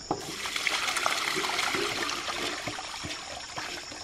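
Water splashes as it pours from a basin through a wicker basket.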